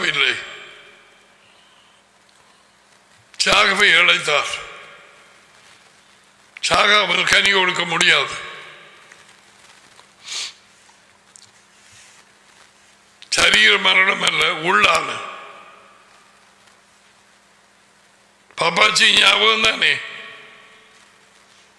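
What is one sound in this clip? A middle-aged man speaks forcefully into a close microphone, in short bursts with pauses.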